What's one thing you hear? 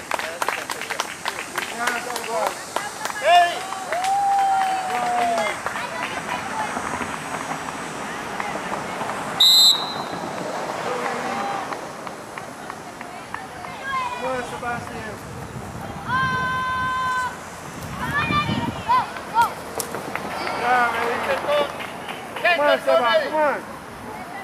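Young children shout and call out nearby outdoors.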